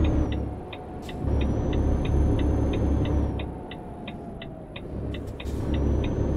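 A truck's turn signal ticks.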